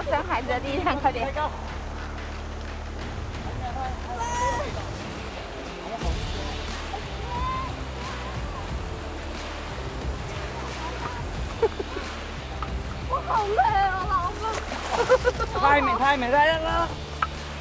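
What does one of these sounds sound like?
A young woman talks with animation.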